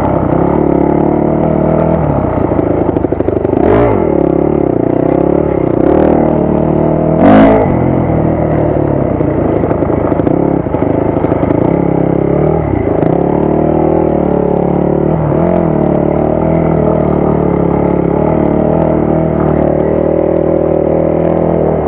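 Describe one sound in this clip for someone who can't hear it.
A dirt bike engine revs and drones up close, rising and falling with the throttle.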